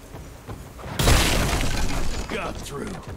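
Chains burst apart with a loud crashing rattle.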